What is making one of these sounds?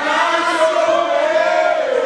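A man shouts excitedly up close.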